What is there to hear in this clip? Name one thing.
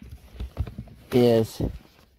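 Fabric bags rustle and shuffle as a hand moves them.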